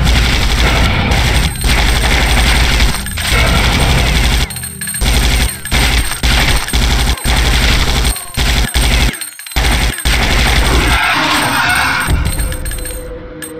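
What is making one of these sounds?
Rapid gunfire blasts loudly in bursts.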